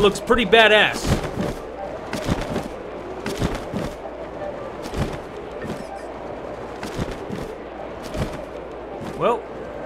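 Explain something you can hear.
Wind rushes steadily past during a long glide downward.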